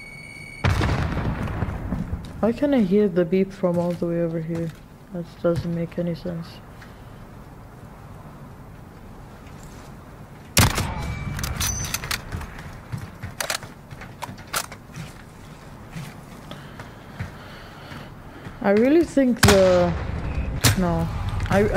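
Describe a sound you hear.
A rifle fires loud single shots that echo briefly.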